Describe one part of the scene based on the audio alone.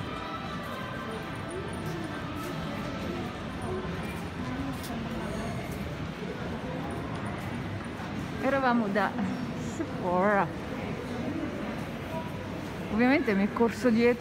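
People's voices murmur in a large echoing hall.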